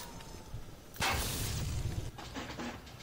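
An electric bolt crackles and zaps.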